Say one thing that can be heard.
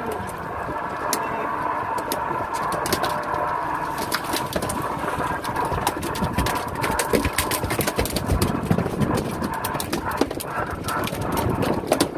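Fishing line rattles and clicks as a man hauls it in by hand.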